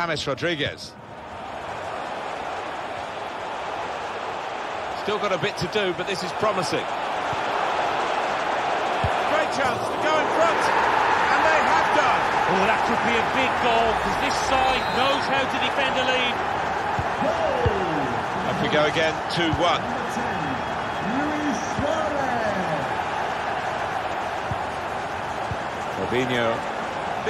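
A large stadium crowd roars steadily and swells to loud cheering.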